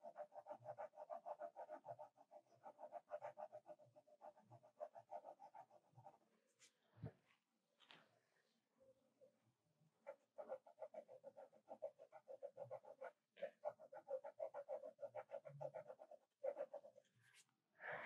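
A pencil scratches on paper in quick, short strokes.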